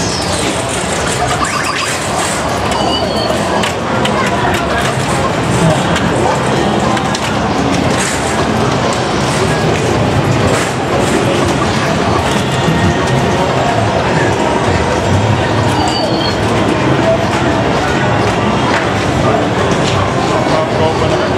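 Pinball machines ring, beep and clatter with electronic tunes.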